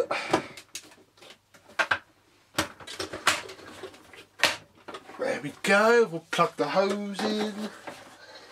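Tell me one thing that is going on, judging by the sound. Plastic parts of a vacuum cleaner knock and click as they are handled.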